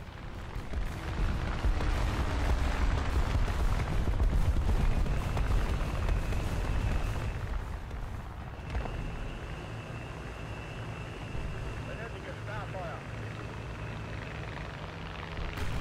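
A tank engine rumbles and clanks steadily.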